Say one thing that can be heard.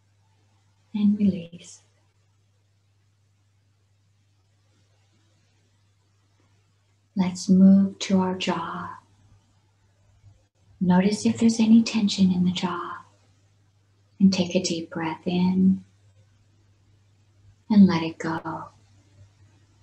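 A woman speaks calmly and slowly over an online call, with long pauses.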